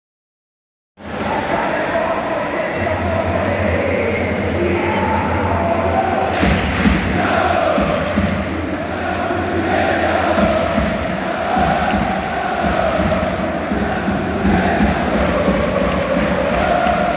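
A large stadium crowd chants and sings loudly in unison.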